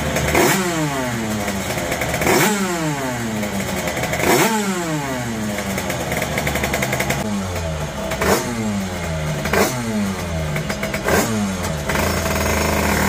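A motorcycle engine revs sharply again and again, then drops back to idle.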